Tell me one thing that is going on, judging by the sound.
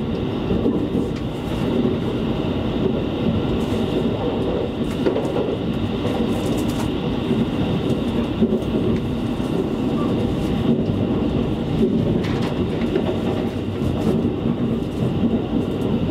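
A train rumbles and rattles steadily along the tracks, heard from inside a carriage.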